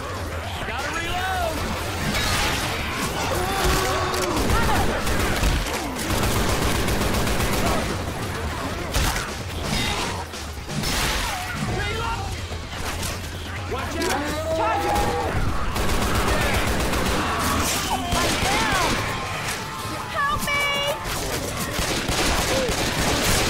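Zombies snarl and groan nearby.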